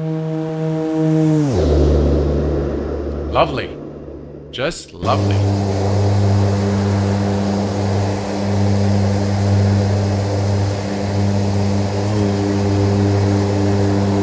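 Propeller engines drone steadily.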